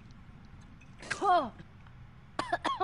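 A girl coughs and sputters.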